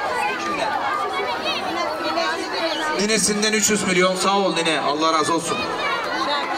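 A crowd of women chatter loudly nearby.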